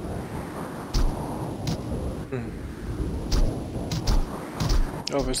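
Short sharp game sound effects of sword slashes ring out.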